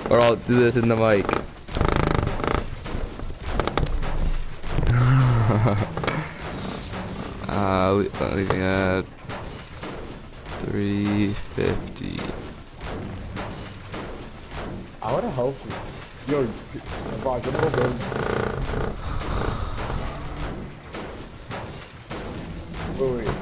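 A pickaxe clangs repeatedly against a metal van.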